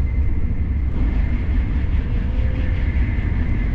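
A passing train rushes by close and loud.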